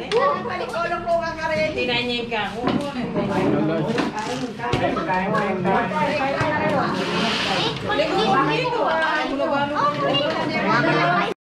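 Children and young adults chatter nearby.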